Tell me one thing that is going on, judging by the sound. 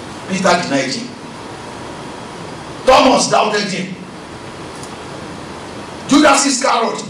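A man preaches through a microphone in short, forceful bursts with pauses between them.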